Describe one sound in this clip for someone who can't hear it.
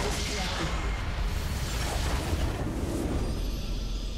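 Magic blasts burst and crackle in a video game battle.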